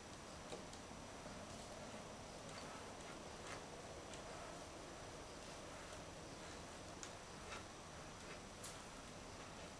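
A plastic scraper scratches and taps across a painted board.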